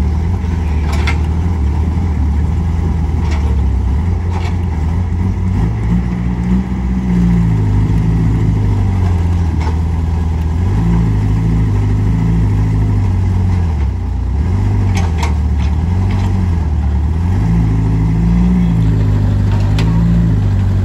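Metal clanks sharply now and then from an excavator's arm.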